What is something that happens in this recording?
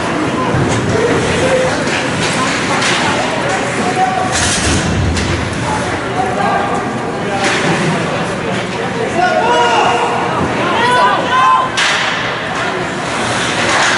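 Skates scrape and hiss across ice.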